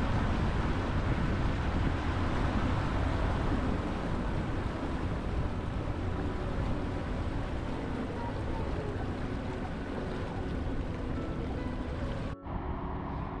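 A boat's outboard motor hums steadily.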